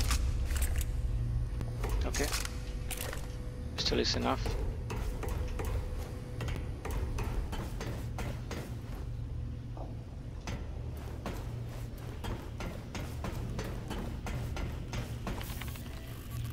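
Footsteps clank on metal grating and stairs.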